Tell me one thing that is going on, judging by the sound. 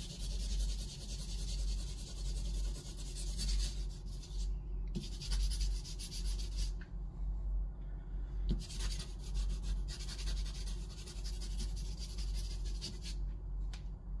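Charcoal scratches and rubs on paper.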